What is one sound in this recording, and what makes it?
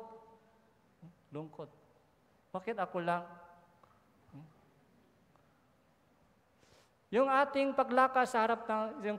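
A middle-aged man speaks into a microphone with pauses, heard through a loudspeaker in a large hall.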